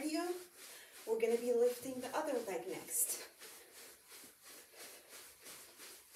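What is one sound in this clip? Feet pad quickly and softly on a carpeted floor.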